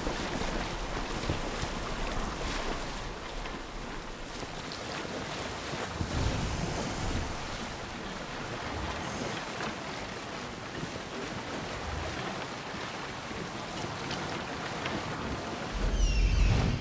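Water rushes and splashes against a sailing boat's hull.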